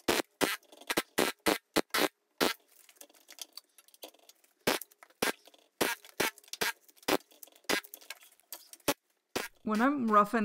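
Chunks of bark knock and crack sharply as a spinning log is turned.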